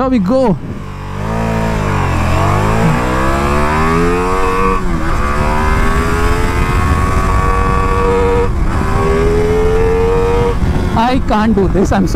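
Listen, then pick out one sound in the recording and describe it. A motorcycle engine roars steadily, climbing in pitch through gear changes.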